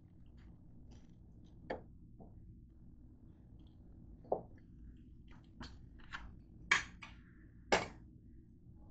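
A pizza cutter's metal wheel clicks and rattles.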